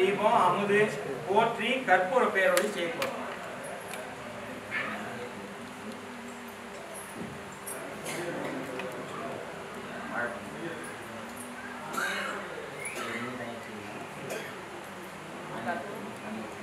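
A man chants a prayer nearby.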